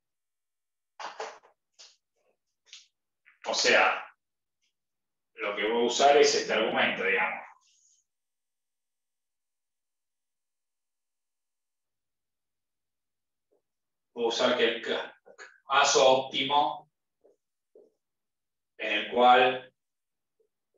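A man speaks calmly, close by, in bursts with pauses.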